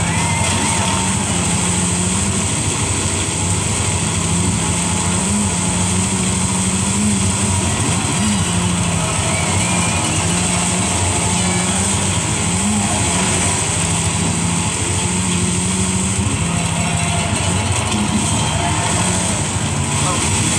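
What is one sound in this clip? A game car's engine revs and drones steadily, rising and falling in pitch as it shifts gears.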